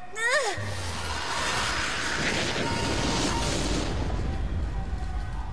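A rushing hiss roars after a blast.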